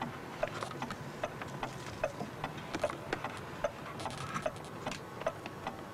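A clock ticks steadily and evenly close by.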